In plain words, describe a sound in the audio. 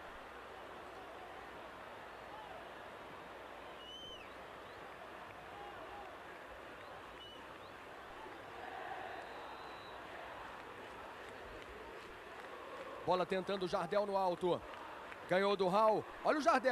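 A large crowd murmurs and chants in a stadium.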